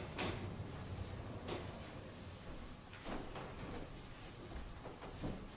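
A piano plays a gentle tune.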